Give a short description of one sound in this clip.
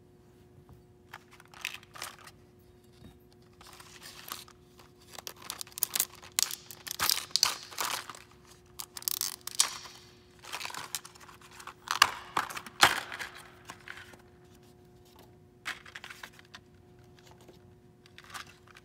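Small metal parts click against each other.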